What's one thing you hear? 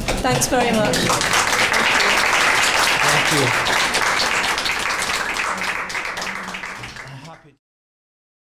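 An audience applauds loudly, then the clapping fades away.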